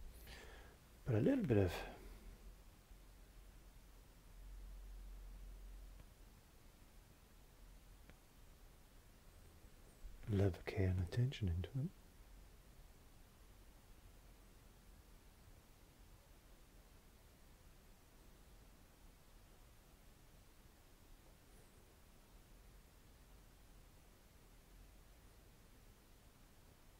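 A brush strokes softly across canvas.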